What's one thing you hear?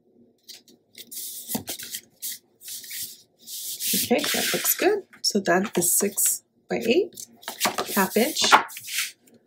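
Stiff paper card rustles and slides across a flat surface.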